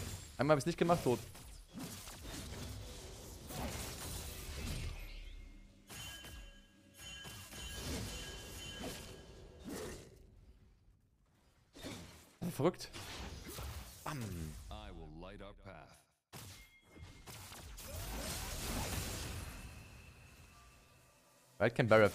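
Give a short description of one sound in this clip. Fighting sound effects clash and zap from a game.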